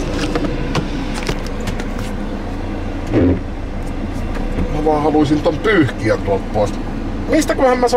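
A car engine hums steadily inside a vehicle.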